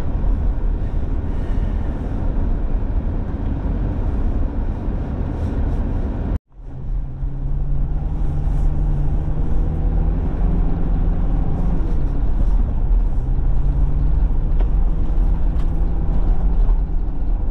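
A car engine rumbles steadily from inside the vehicle.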